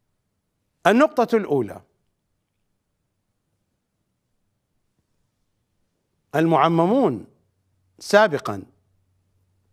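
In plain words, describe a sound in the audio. A middle-aged man speaks with animation into a close microphone, in short bursts with long pauses.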